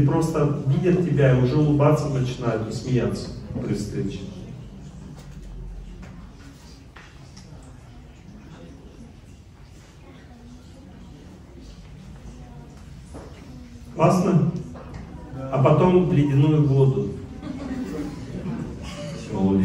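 An elderly man speaks calmly into a microphone, pausing at times.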